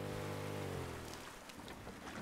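A boat motor hums steadily, then winds down and stops.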